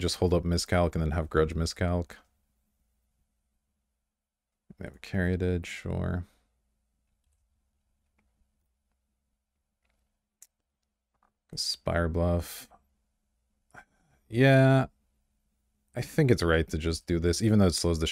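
A young man speaks casually into a close microphone, in short bursts with pauses.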